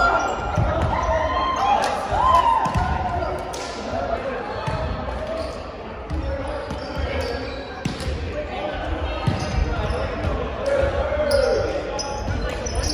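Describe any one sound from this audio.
A volleyball thumps against hands and arms.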